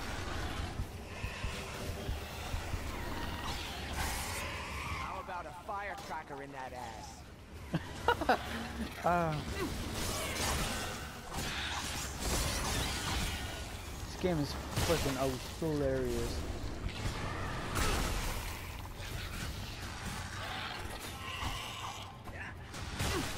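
A sword swishes and slices through flesh.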